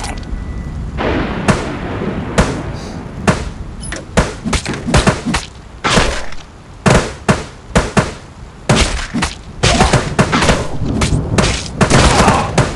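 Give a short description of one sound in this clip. Explosions boom in quick bursts.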